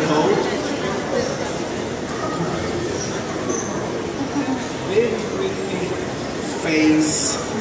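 A crowd murmurs in the background of a large echoing hall.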